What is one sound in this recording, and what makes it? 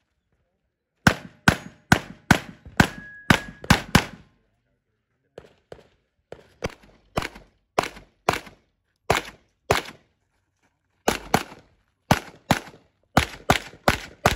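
Pistol shots crack in quick bursts outdoors, close by.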